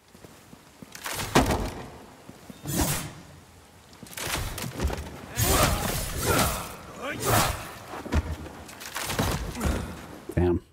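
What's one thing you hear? A blade swooshes and strikes in a fight.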